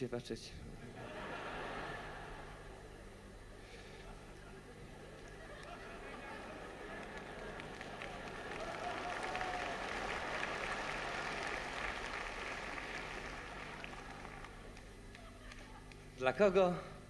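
A large crowd applauds in a big hall.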